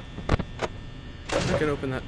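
A switch clicks.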